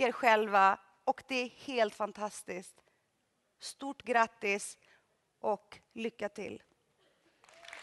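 A woman sings in a large echoing hall.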